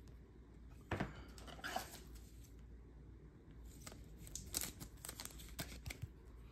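A stiff plastic card holder clicks and rattles as it is handled.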